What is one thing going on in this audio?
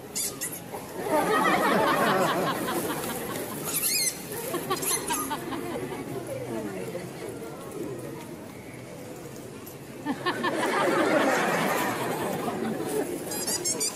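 A crowd of onlookers laughs and cheers outdoors.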